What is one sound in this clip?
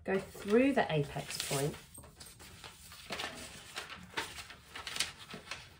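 Paper rustles as it is lifted and moved.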